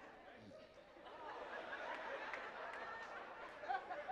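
A crowd murmurs softly.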